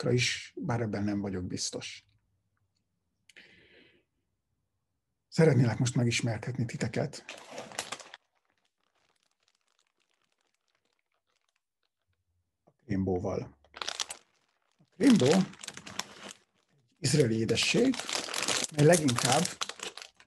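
A man talks calmly and close up into a microphone, in bursts with pauses.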